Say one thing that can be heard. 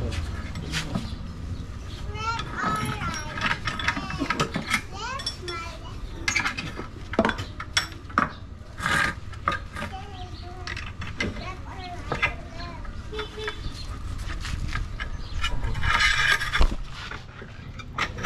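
A hammer taps on metal.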